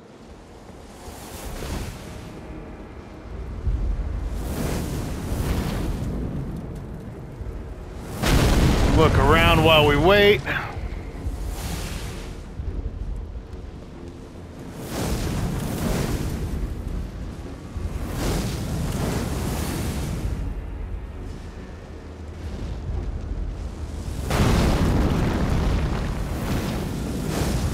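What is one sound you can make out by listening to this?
A sword swings through the air with repeated whooshes.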